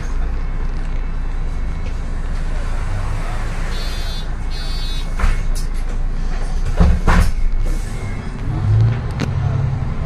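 A bus engine hums steadily from inside the bus.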